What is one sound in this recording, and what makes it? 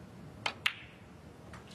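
Snooker balls click sharply together.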